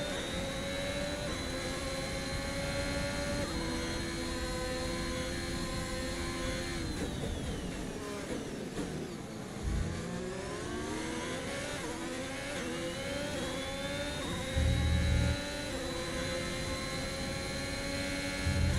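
A racing car engine screams at high revs, drops in pitch while braking, then climbs again as it accelerates.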